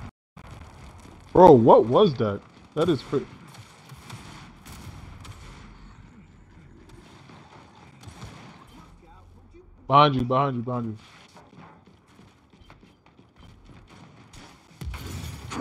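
Heavy boots thud on stone as a soldier runs.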